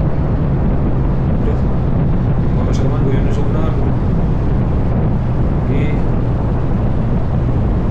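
Tyres hum steadily on a paved road.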